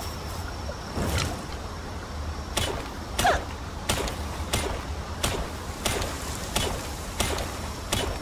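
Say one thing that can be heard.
A pickaxe strikes rock again and again with sharp, ringing clinks.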